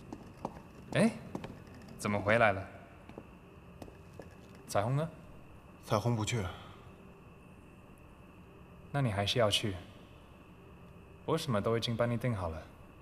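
A second young man answers calmly nearby.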